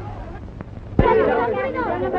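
A crowd of people talk and exclaim loudly.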